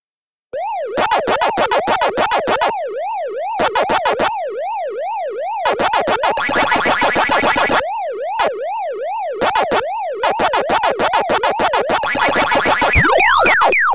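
Electronic chomping blips warble rapidly as a game character eats dots.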